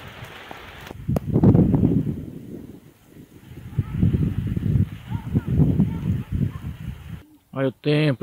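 Wind roars and gusts outdoors.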